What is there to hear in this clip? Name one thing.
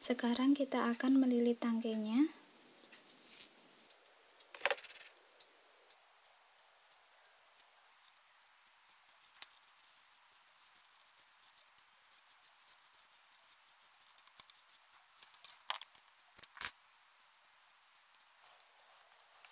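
Hands wrap crinkly tape around a thin stick.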